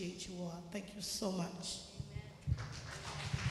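A woman sings into a microphone in a large echoing hall.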